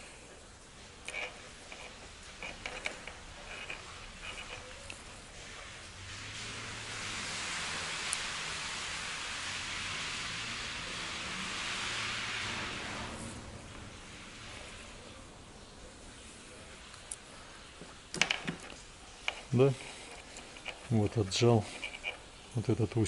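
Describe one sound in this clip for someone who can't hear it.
Small plastic parts click and tick as a screwdriver works on a wired connector.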